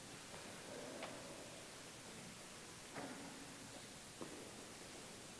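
Metal altar vessels clink against each other in a large echoing church.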